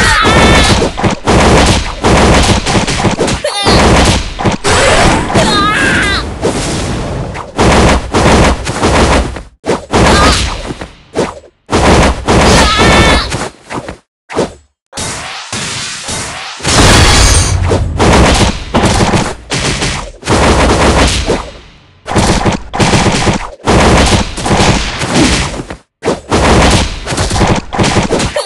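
Upbeat game music plays.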